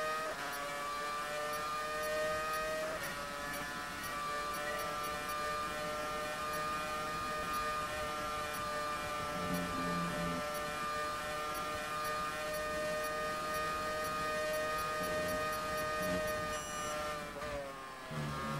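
A racing car engine whines steadily at high revs.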